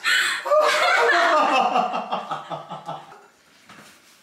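A woman cries loudly close by.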